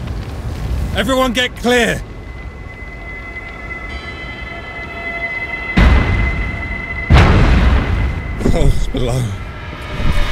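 A man speaks firmly up close.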